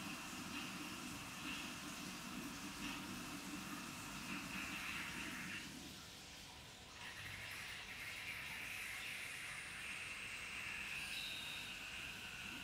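Liquid trickles as it is poured into a funnel.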